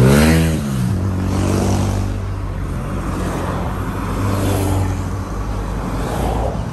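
Tyres roll on the road as cars drive past.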